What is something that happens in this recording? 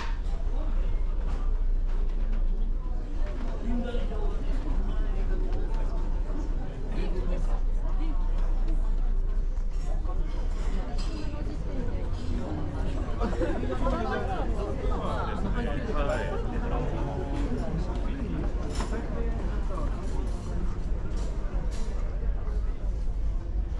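Many diners chatter in a large room, a steady murmur of voices.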